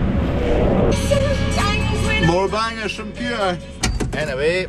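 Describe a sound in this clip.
A radio plays music in a cab.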